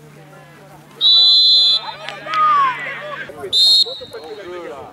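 A referee's whistle blows sharply, twice.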